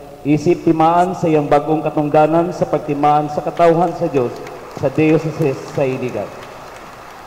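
A man chants in a sung voice through a microphone, echoing in a large hall.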